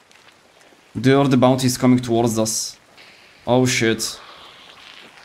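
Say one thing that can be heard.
A young man talks close to a microphone in a casual, animated voice.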